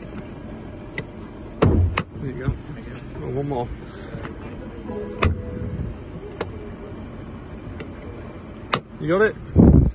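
Plastic trim clicks and snaps as a hand pulls at it.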